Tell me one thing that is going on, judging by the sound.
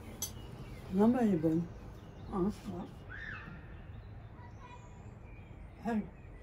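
A middle-aged woman speaks close by with animation.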